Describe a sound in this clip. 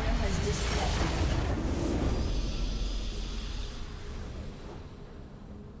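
A victory fanfare swells with a deep booming hit.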